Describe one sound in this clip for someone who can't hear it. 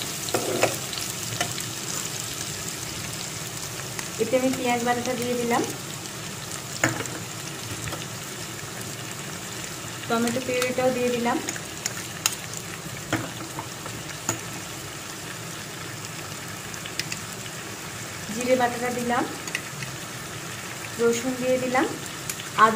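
Oil sizzles and bubbles in a hot pan.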